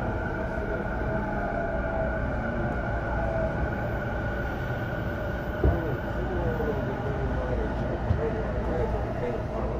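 A train rumbles steadily along with a droning motor hum.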